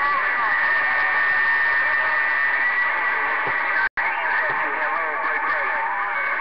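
Static hisses steadily from a radio receiver.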